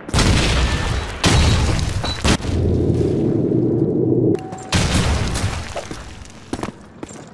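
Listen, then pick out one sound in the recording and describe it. Gunshots crack loudly close by.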